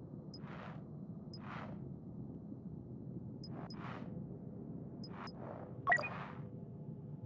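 Short menu blips sound as selections change.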